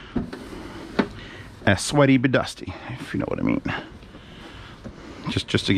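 A paper towel rubs across a hard surface.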